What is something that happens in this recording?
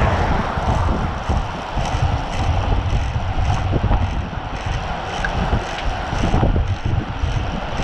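Bicycle tyres hum steadily on a paved road.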